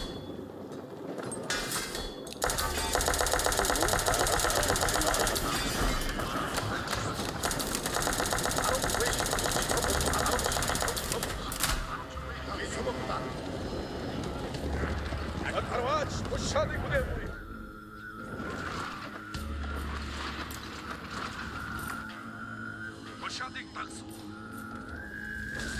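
A large army of soldiers tramps along in a dense, rumbling crowd.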